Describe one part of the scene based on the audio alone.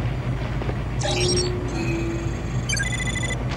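An electronic scanner beeps and whirs.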